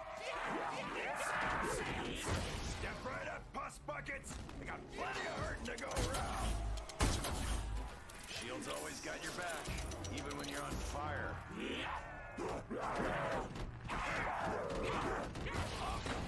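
Monsters snarl and growl up close.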